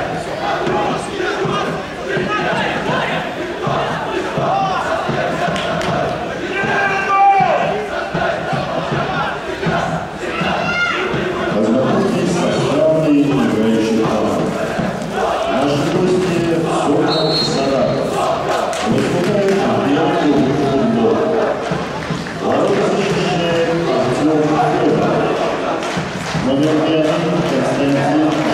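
Young men shout to each other across an open field, far off.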